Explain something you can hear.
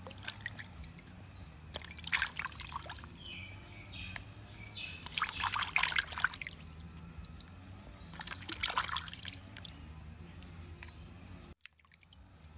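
Water splashes as hands rinse fruit in a bowl.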